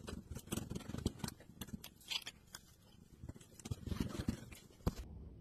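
A cat bats at a plastic toy, which taps and rattles.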